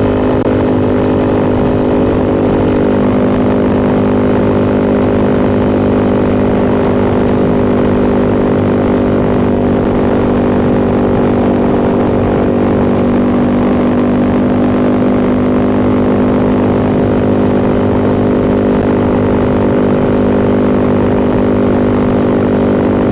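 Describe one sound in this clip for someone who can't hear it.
A motorcycle engine hums steadily at cruising speed, heard up close.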